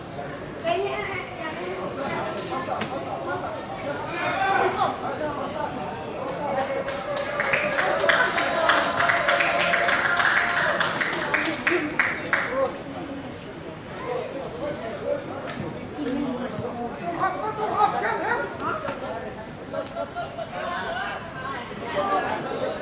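Young men shout and call out to each other across an open pitch.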